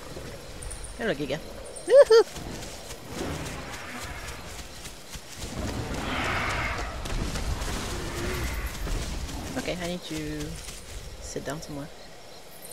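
Dinosaurs call out with short, wavering cries.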